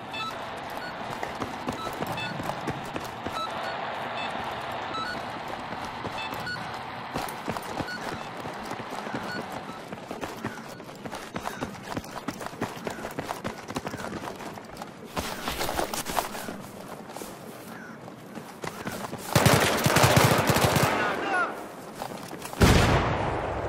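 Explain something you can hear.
Footsteps tread steadily on hard ground.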